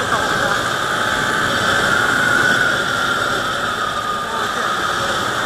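A small underbone motorcycle engine hums while coasting downhill.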